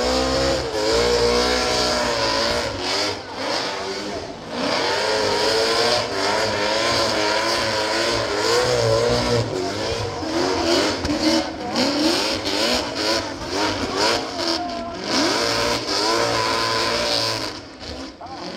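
Tyres squeal and screech as they spin on the track.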